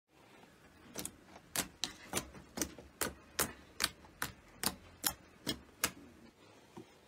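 Fingers press into thick slime, making sharp wet pops.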